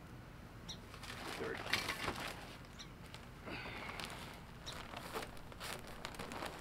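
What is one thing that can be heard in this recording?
Potting soil pours out of a bag with a rustling hiss.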